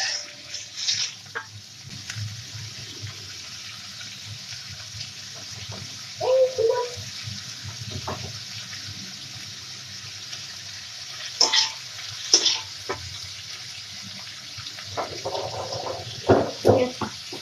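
Food sizzles steadily in hot oil.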